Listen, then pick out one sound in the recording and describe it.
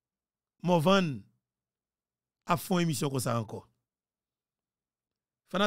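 A young man speaks closely into a microphone in short, lively bursts.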